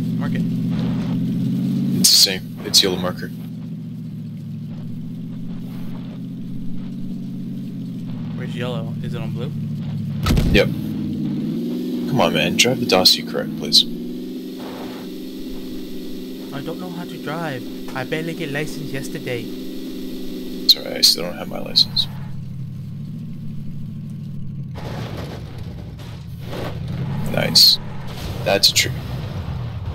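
A car engine drones steadily, rising and falling in pitch.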